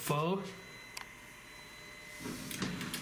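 A lift button clicks as it is pressed.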